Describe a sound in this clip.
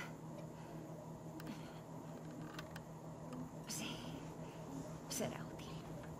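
A bowstring creaks as it is drawn back.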